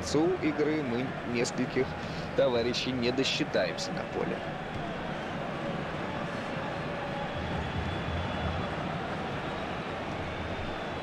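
A large crowd murmurs and roars steadily in a stadium.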